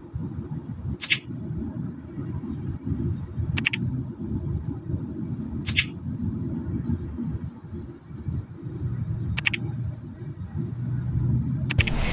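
Short bright game chimes ring out as menus pop up.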